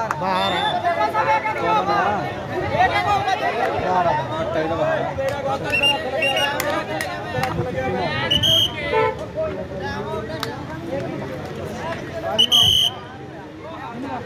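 A crowd of men chatter and shout outdoors.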